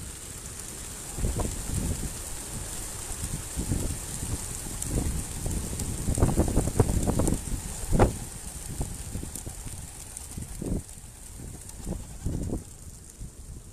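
A large flock of pigeons flaps its wings loudly as it bursts into flight.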